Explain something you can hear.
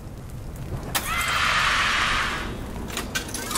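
A fiery blast whooshes and bursts.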